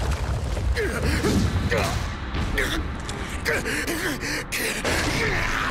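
A young man shouts with effort.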